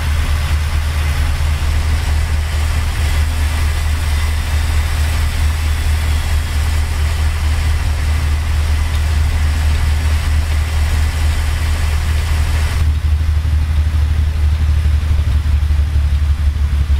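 A truck engine drones steadily with a low rumble.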